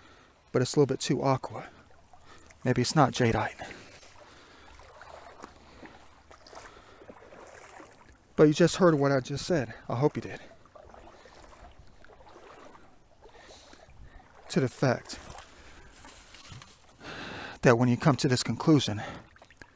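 Shallow water trickles softly over pebbles.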